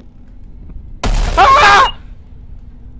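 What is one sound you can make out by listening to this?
An elderly man screams in fright into a headset microphone.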